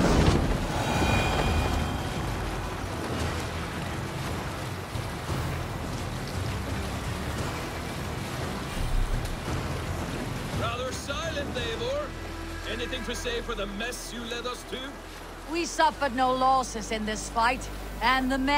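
Water rushes and splashes against a boat's hull as it sails through waves.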